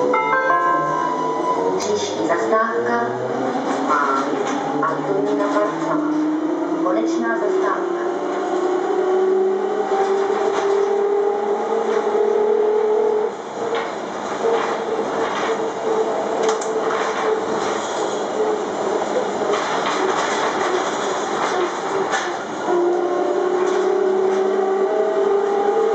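A bus rattles and rumbles as it drives along.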